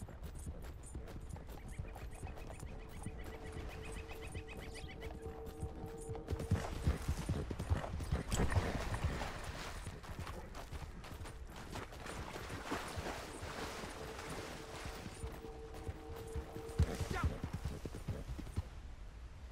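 A horse gallops with hooves thudding on the ground.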